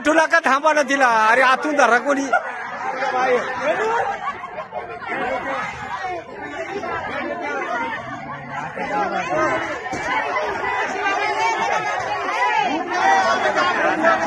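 A crowd of men and women shout and call out excitedly close by, outdoors.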